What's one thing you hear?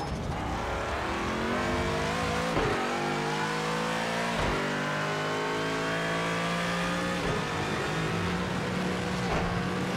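A racing car engine roars and climbs in pitch, dropping sharply with each gear shift.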